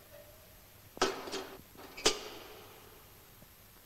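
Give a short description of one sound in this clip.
A heavy metal kettle is set down with a clunk.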